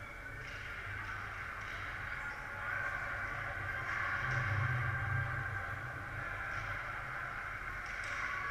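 Skates scrape and swish on ice in a large echoing rink.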